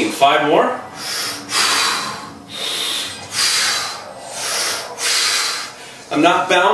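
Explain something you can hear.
A man breathes out hard in rhythm with his movement.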